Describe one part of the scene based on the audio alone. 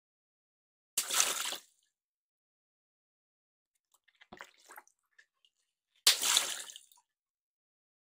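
A water balloon bursts with a loud pop and a splash of water.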